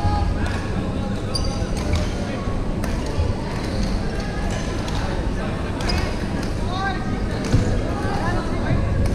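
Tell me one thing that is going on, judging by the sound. Shoes squeak sharply on a wooden floor.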